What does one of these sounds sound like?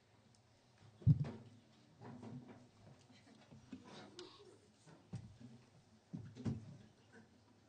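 A metal folding chair clatters and bangs on a hard floor.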